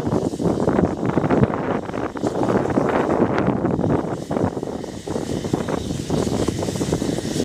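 A steam locomotive chuffs and hisses steam nearby.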